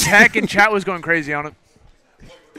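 A young man shouts with excitement close to a microphone.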